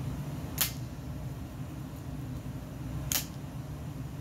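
Metal parts click together in a man's hands.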